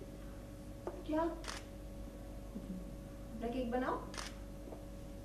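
A young woman speaks sharply and close by.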